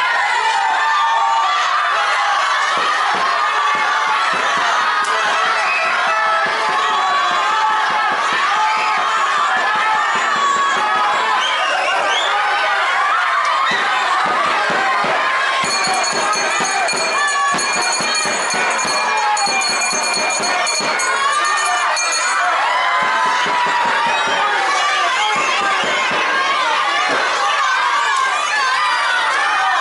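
A large crowd of children and adults shouts and cheers loudly nearby.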